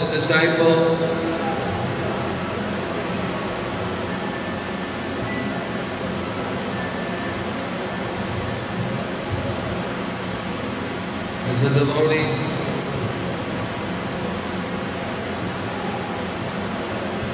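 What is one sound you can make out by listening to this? A middle-aged man speaks calmly into a microphone, his voice carried over a loudspeaker.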